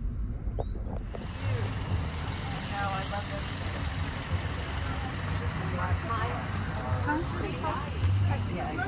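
Adult voices talk nearby outdoors.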